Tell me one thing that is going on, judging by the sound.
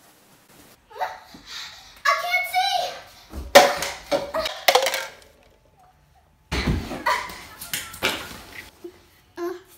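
A young girl sings and shouts excitedly close by.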